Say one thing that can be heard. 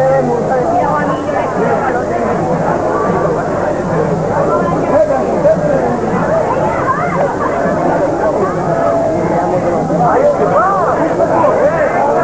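A crowd of young men and women chatter loudly all around, outdoors.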